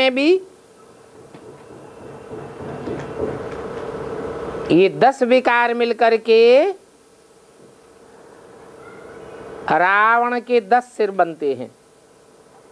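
An elderly man reads aloud in a slow, chanting voice.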